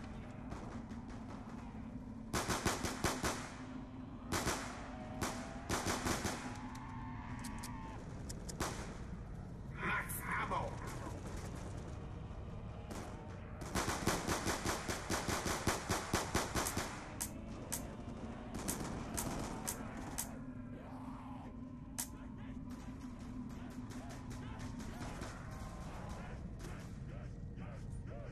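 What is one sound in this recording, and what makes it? Zombies growl and groan.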